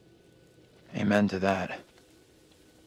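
A man answers briefly in a calm voice.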